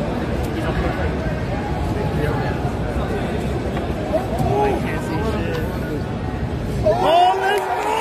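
A crowd chatters loudly in a busy, echoing hall.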